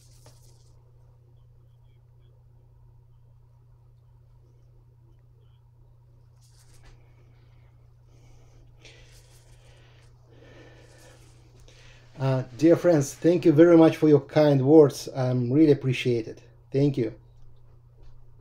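A brush dabs and strokes softly on paper.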